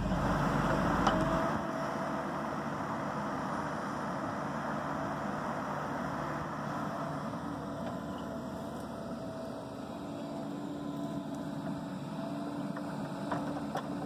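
A small excavator engine runs with a steady rumble.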